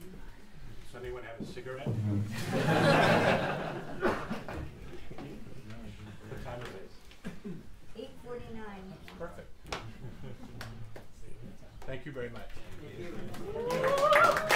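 A man speaks to an audience in a raised, calm voice.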